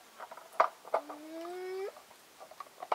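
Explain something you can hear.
Water pours from a jug into a bowl.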